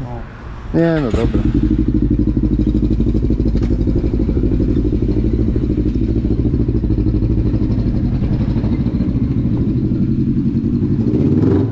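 A quad bike engine idles with a steady rumble.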